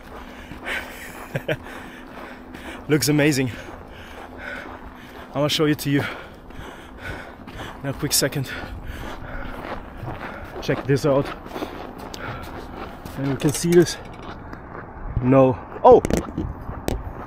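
A young man talks with animation close to the microphone, outdoors.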